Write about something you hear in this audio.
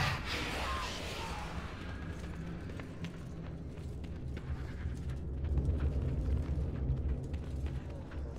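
Sword blows strike a creature with sharp thuds.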